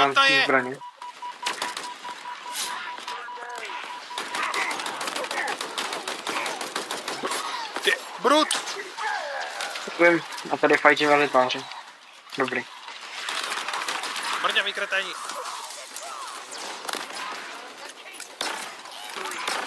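An assault rifle fires.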